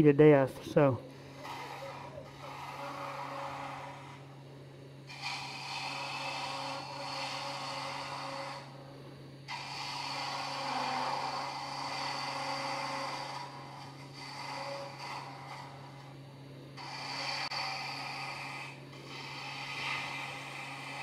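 A wood lathe hums steadily.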